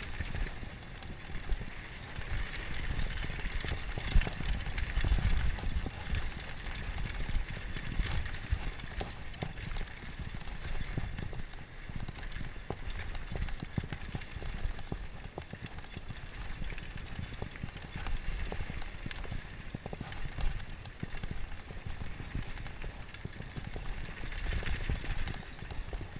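A mountain bike rattles and clatters over bumps.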